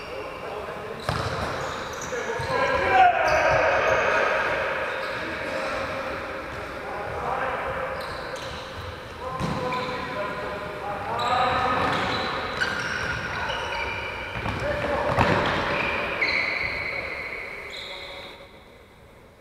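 Young men shout to each other across a large echoing hall.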